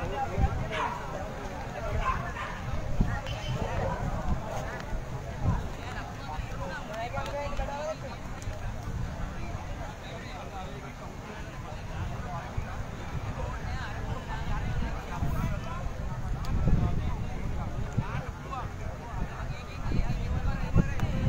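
A crowd of men and boys chatter outdoors at a distance.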